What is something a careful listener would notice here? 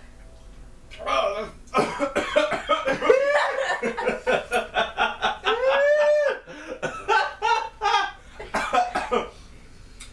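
Young men laugh loudly and heartily close by.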